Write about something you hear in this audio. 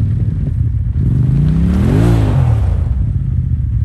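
An off-road vehicle's engine revs up loudly and then drops back.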